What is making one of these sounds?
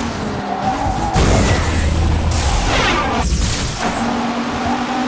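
A car bumps and scrapes against a barrier.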